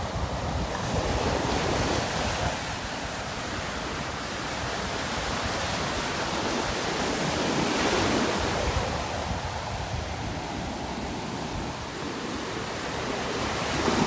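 Waves break and wash up onto the shore in steady surges.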